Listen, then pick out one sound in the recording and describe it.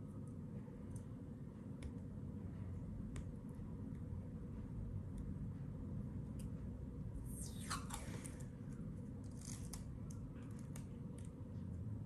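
Tape peels and crinkles in a woman's fingers.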